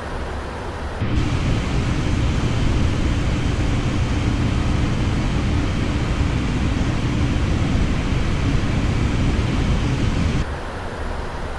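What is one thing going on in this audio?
Jet engines roar loudly outside an airliner in flight.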